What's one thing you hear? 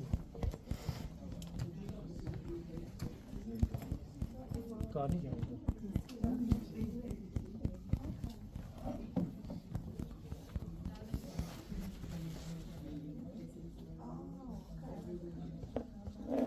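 Fabric rustles and brushes close by.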